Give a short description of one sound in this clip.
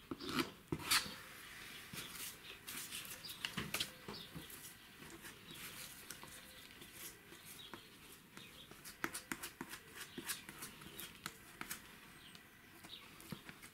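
Paper rustles and crinkles as it is smoothed down by hand.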